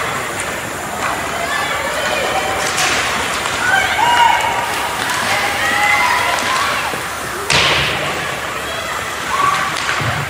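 Young players shout and call out to each other across a large echoing rink.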